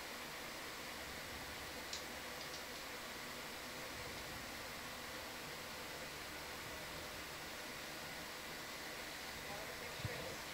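Water murmurs and hisses steadily, heard from underwater.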